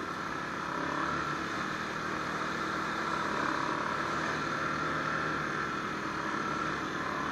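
An all-terrain vehicle engine drones steadily up close.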